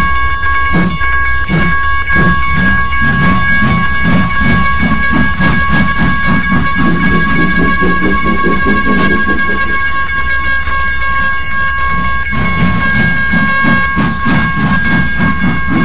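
A steam locomotive chuffs rhythmically as it pulls away.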